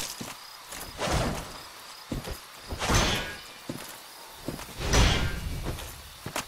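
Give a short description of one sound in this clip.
A sword swings through the air with a sharp whoosh.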